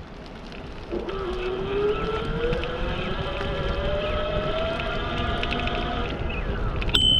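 A small motor engine hums and rises in pitch as it speeds up.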